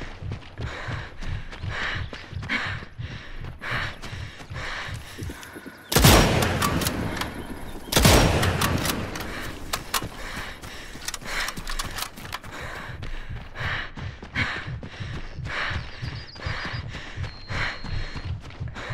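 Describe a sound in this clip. Footsteps thud quickly over the ground.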